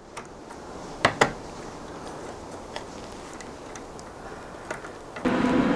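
Metal parts click and clack as they are handled.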